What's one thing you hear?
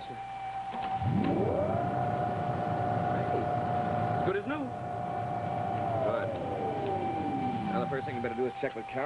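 A machine whirs up to a high whine, holds, then winds down.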